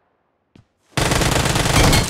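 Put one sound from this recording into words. An automatic gun fires in a rapid burst.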